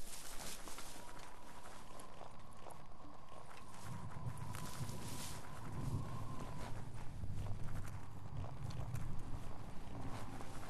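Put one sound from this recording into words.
Quick footsteps crunch over loose rubble.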